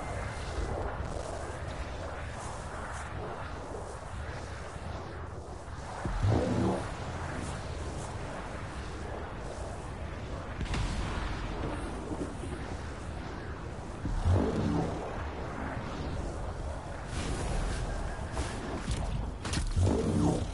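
A jet suit roars steadily as it flies.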